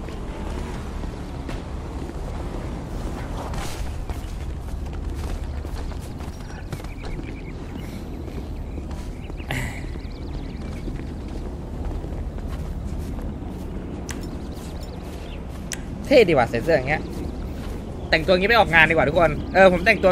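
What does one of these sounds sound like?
Footsteps thud on grass and track as a character runs.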